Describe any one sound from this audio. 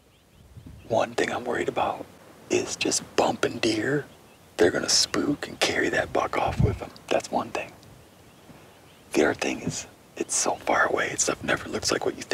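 A young man talks in a low, hushed voice close by.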